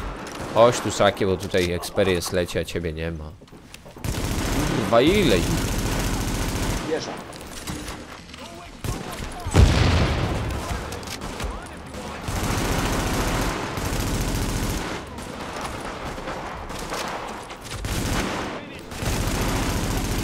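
Rifle gunfire rattles in short bursts.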